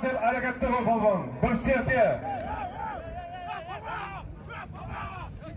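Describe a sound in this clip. Several men shout loudly nearby.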